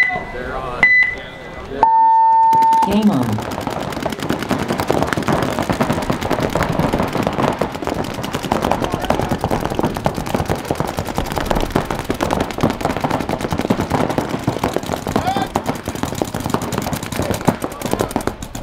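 Paintball guns fire in rapid bursts.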